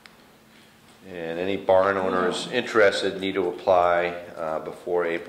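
A man speaks calmly into a table microphone in a quiet room.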